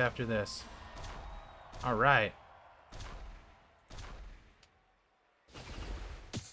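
Electronic game sound effects chime and whoosh in short bursts.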